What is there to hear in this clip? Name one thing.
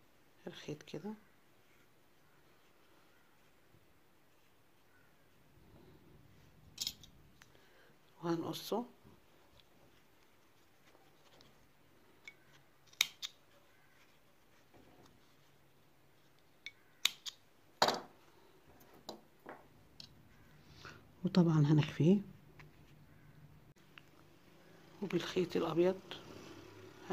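Hands rustle softly while handling a crocheted ball of yarn.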